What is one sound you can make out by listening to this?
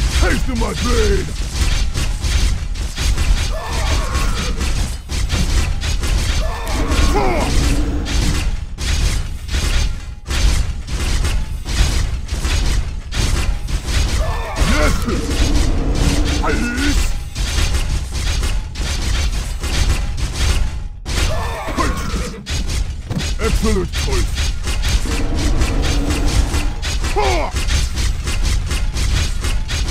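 Blades clash and strike rapidly in a fierce battle.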